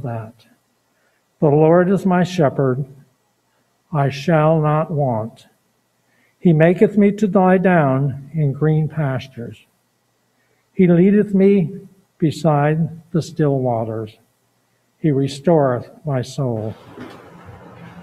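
An elderly man speaks calmly into a microphone in a slightly echoing room.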